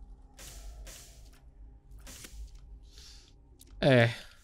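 Video game effects burst and hiss in short blasts.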